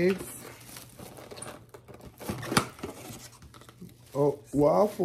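A foam food container rustles and creaks as it is opened.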